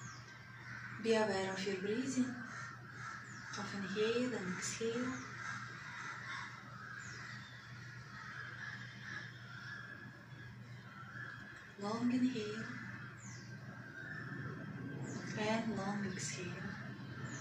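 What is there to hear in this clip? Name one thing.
A woman chants slowly and calmly nearby.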